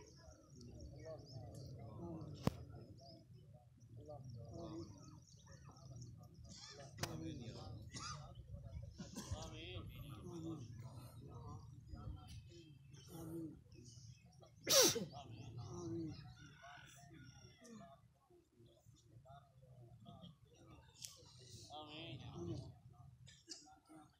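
Men talk and murmur softly nearby, outdoors.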